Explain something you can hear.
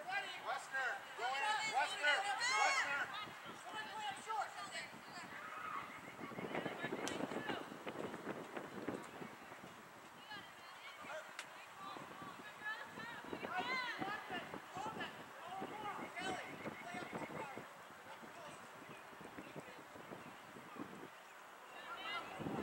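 Adult spectators nearby cheer and shout.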